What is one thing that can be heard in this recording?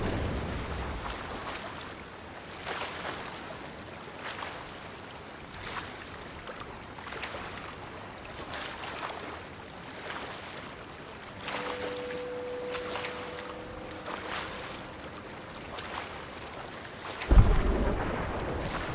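Waves slosh and splash close by, all around.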